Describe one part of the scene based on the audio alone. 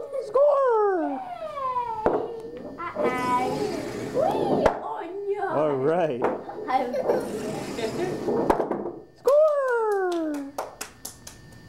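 A toddler squeals and babbles up close.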